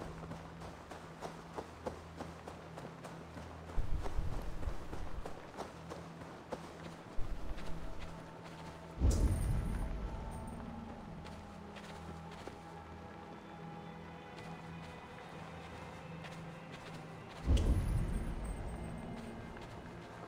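Coins tinkle softly.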